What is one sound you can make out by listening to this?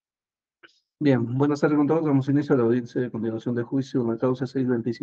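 A man speaks steadily through an online call.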